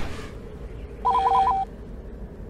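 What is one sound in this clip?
Short electronic beeps chirp in a quick tune.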